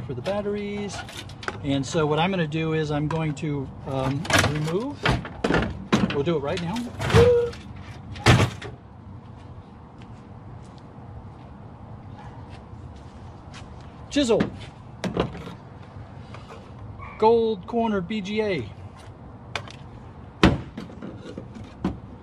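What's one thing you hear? Metal parts clank and rattle as a computer case is taken apart.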